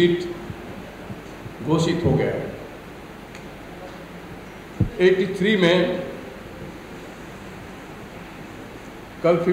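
A middle-aged man speaks calmly into microphones, in short bursts with pauses.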